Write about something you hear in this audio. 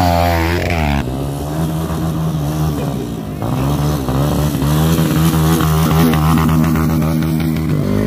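A dirt bike engine revs hard, rising and falling in pitch.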